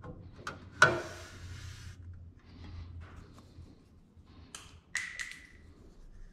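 A thin metal sheet flexes and clatters against a car body.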